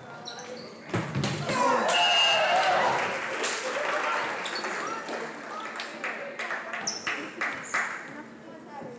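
A crowd cheers and claps after a point.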